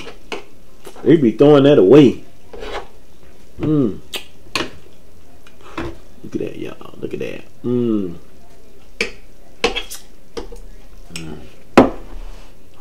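A fork and knife click against a plate.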